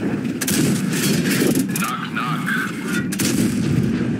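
A tank gun fires with a loud boom.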